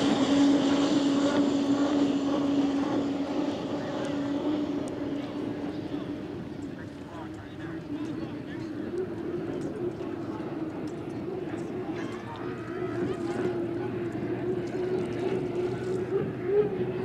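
A racing boat's engine roars loudly at high speed.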